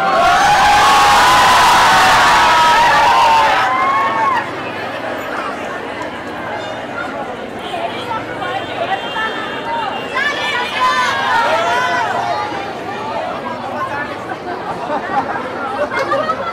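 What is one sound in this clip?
Many young men and women call out and whoop in a large crowd.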